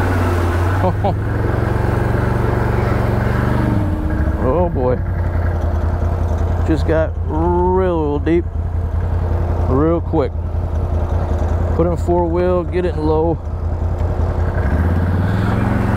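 An all-terrain vehicle engine rumbles and revs.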